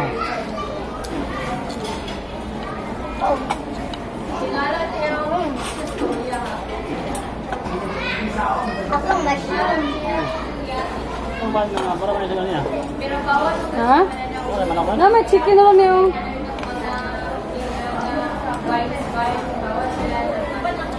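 Adults talk indistinctly in the background.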